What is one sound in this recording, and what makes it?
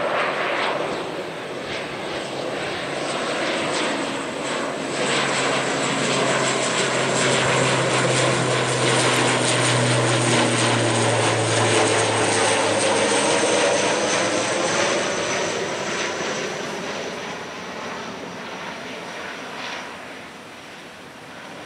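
A propeller airliner roars loudly overhead, growing louder and then slowly fading away.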